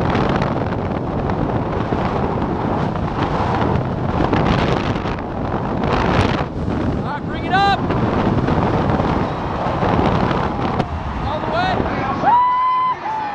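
Wind roars loudly past during a fast descent.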